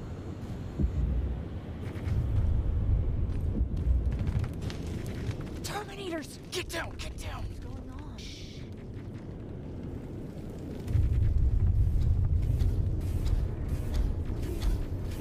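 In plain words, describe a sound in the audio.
A deep rumble of explosions and battle fills the air.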